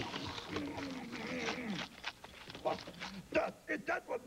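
Crunchy munching sounds come in quick bursts.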